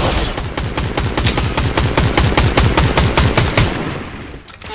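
A game gun fires in rapid bursts.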